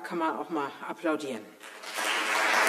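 A middle-aged woman speaks calmly into a microphone in an echoing room.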